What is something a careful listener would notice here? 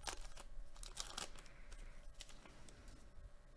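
A foil card wrapper crinkles and tears as hands open it.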